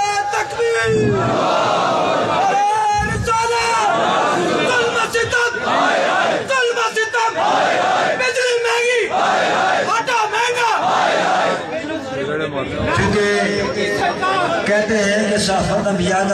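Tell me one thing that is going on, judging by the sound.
A crowd of men chants back in unison.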